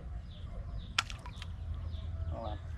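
A small bottle splashes into water.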